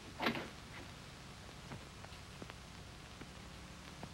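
A door opens with a soft click.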